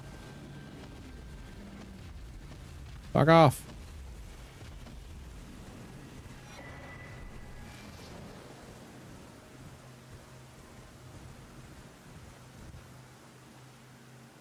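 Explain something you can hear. A man talks quietly into a close microphone.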